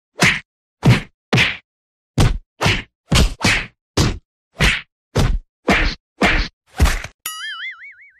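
Heavy blows land on a person, thudding again and again.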